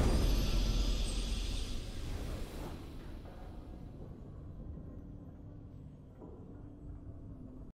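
A triumphant game victory fanfare booms and then slowly fades into soft music.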